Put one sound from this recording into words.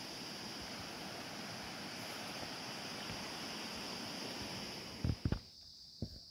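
Water rushes steadily in a stream.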